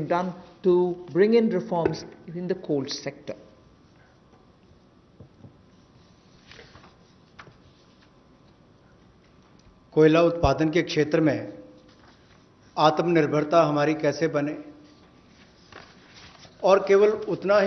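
A middle-aged woman speaks calmly into a microphone, in pauses.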